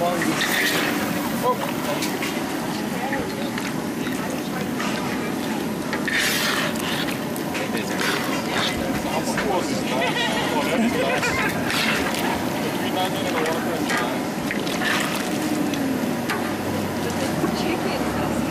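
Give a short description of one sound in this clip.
Meat and onions sizzle loudly in hot oil.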